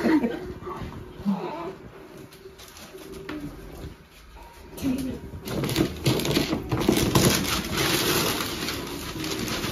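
Wrapping paper rustles as a young woman searches through gifts.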